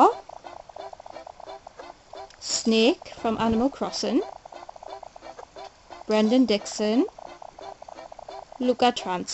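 A handheld game plays a bouncy electronic tune with quick blips.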